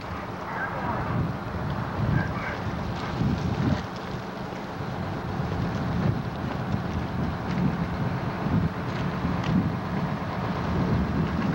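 Water splashes under tyres.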